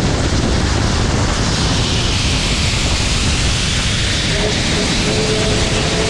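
A second steam locomotive passes close alongside, hissing.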